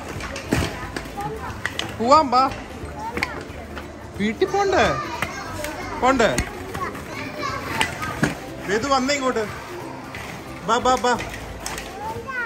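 Plastic balls rustle and clatter as a child moves through them.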